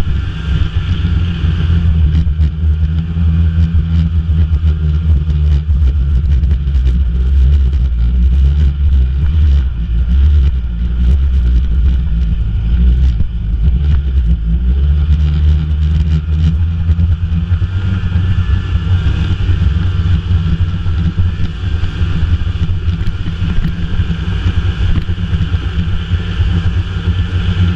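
A snowmobile engine drones as the sled cruises along.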